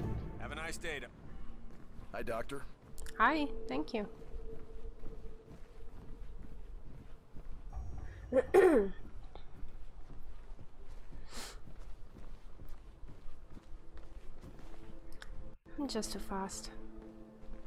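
Footsteps thud softly on carpeted stairs and floors.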